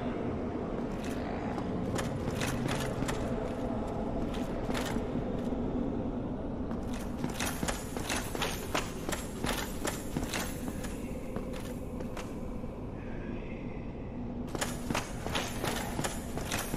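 Heavy armored footsteps clatter quickly on stone.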